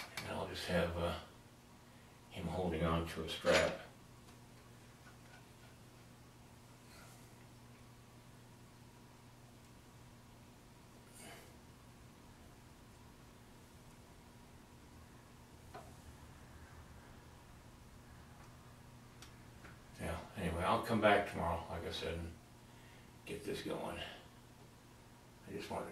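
An older man talks calmly nearby, in short bursts.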